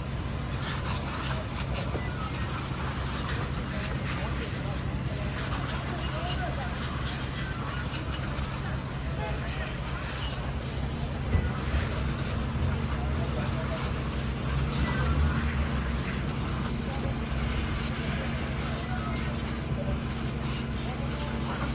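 Small bursts pop and crackle in the fire.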